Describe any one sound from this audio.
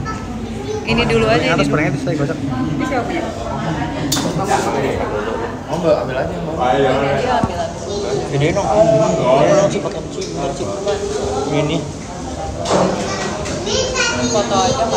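A young man talks casually up close.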